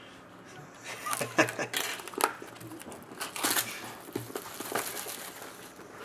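Plastic wrap crinkles as it is torn from a box.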